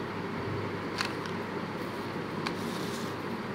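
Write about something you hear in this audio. Plastic packaging rustles and clicks as a hand handles it.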